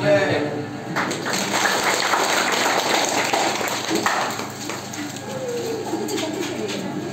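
A crowd of children and adults chatter and murmur nearby.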